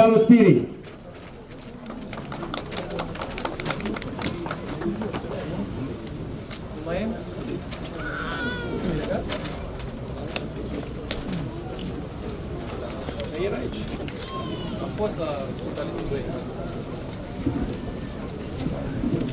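Several people murmur and talk quietly outdoors.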